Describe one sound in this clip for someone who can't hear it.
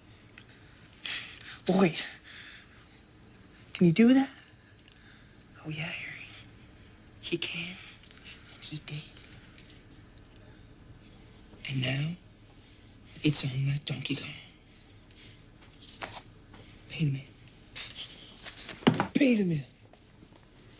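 A young man speaks loudly and with animation nearby.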